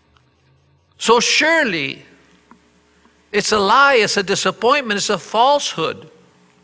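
An elderly man speaks slowly and with emphasis through a microphone.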